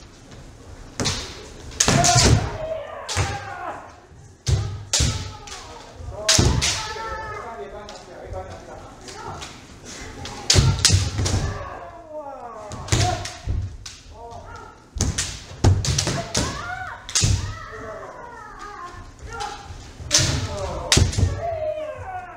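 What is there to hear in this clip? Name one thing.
Bare feet stamp on a wooden floor.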